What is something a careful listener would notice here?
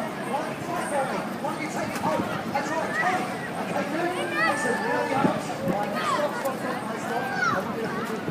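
Children shout and squeal excitedly.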